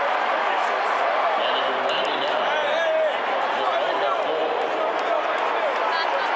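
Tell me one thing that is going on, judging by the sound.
Fans nearby yell and whoop.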